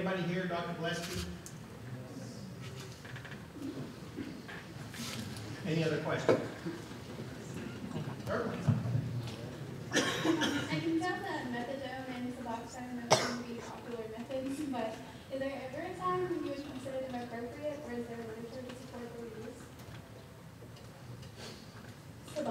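A man speaks calmly through a microphone, echoing in a large hall.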